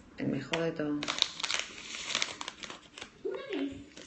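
A plastic snack bag crinkles and rustles.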